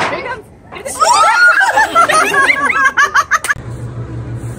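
A young woman laughs loudly and excitedly.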